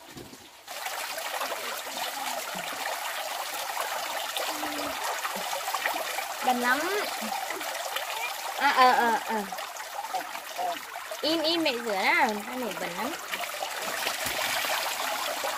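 Water pours steadily from a pipe into a basin.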